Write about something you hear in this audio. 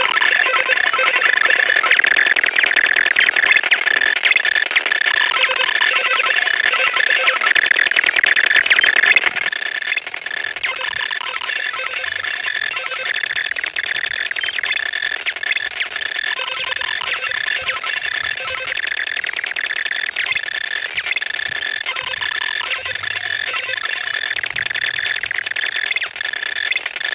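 Slot reels spin with rapid clicking beeps.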